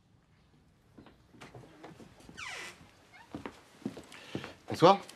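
Footsteps walk in on a hard floor.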